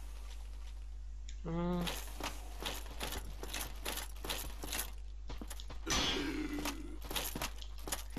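Armoured footsteps clatter on a stone floor.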